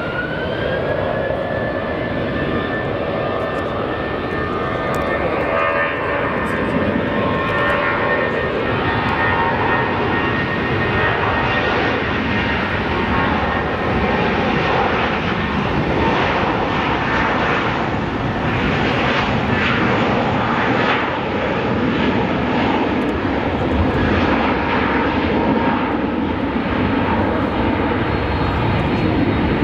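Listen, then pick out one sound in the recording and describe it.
A jet airliner's engines roar loudly as it speeds down the runway for takeoff.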